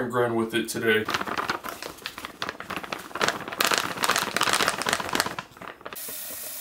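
Powder pours from a pouch into a plastic bucket with a rustling hiss.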